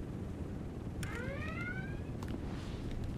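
A rising electronic chime sounds from a game.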